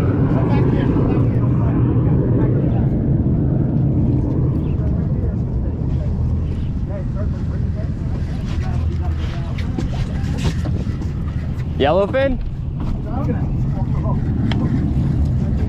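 Wind rumbles steadily across open water.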